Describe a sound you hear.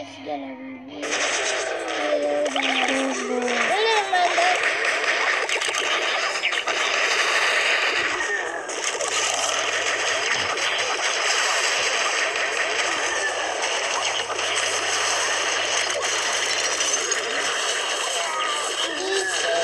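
Cartoon battle sounds clash and crash busily.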